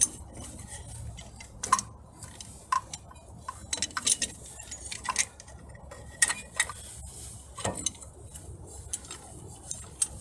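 A wrench clicks and clanks against metal parts.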